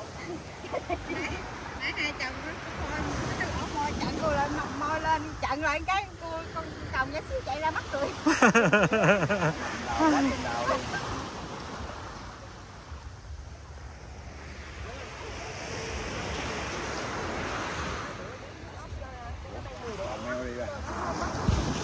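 Several women talk and call out close by, outdoors at night.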